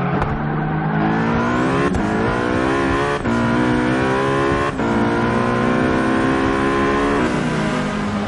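A racing car engine revs up high and shifts gears, rising in pitch again after each shift.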